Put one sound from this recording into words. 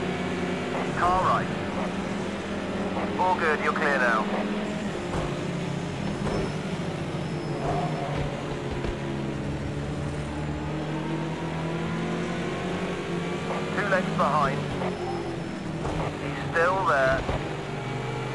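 Tyres squeal briefly in the corners.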